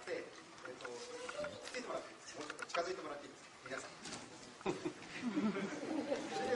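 A crowd of men and women murmurs and talks nearby in a busy room.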